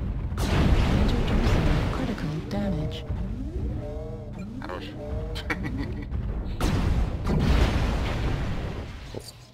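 Laser weapons fire in loud, roaring bursts.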